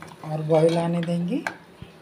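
A metal ladle scrapes against a metal pot while stirring.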